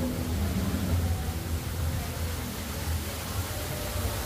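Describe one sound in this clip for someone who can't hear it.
Water trickles and splashes down a rock wall.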